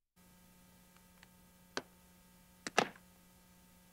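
Metal latches on a case click open sharply.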